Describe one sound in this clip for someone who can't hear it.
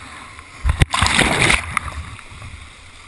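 Water splashes loudly against a kayak.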